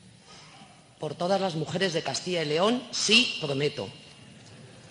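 A woman speaks a short pledge into a microphone.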